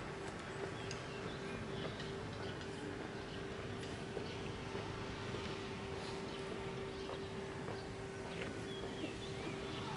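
Boots crunch and stamp on gravel as a small squad marches.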